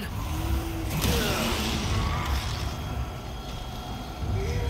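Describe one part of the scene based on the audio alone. A monster growls and snarls nearby.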